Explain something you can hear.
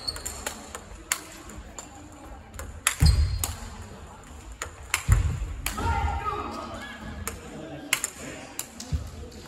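Table tennis balls tap on other tables in a large echoing hall.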